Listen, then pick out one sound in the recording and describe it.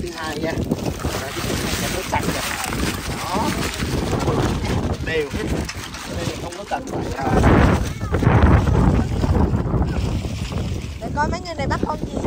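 Water splashes as feet wade through shallow water.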